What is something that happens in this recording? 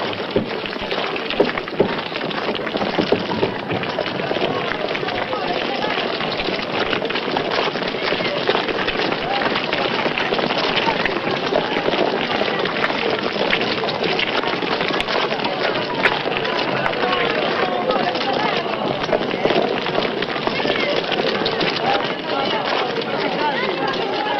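A large crowd of men and women murmurs and talks outdoors.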